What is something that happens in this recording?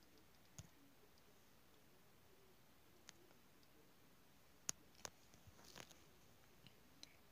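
Fingertips tap lightly on a touchscreen.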